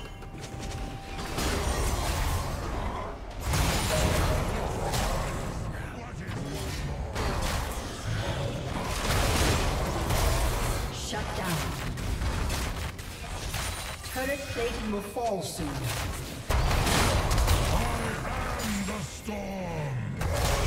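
Game spells and attacks crash and whoosh in a fast fight.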